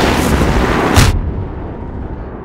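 A gun fires a loud blast.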